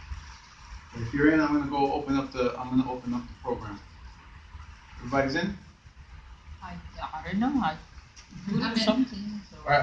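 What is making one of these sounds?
A man speaks with animation in a room, his voice echoing slightly.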